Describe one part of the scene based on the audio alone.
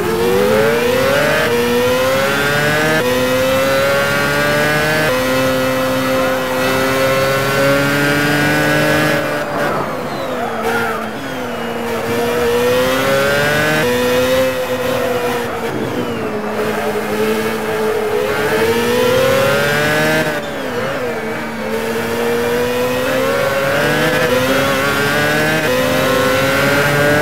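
An open-wheel racing car engine revs high and shifts up through the gears.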